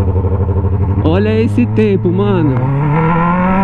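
A motorcycle engine revs in short bursts.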